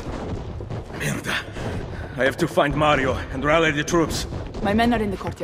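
A man speaks urgently.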